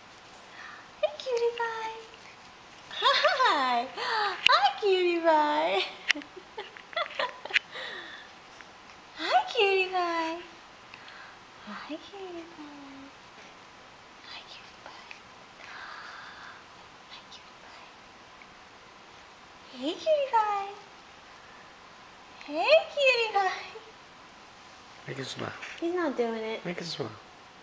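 A woman talks to a baby in a high, playful voice up close.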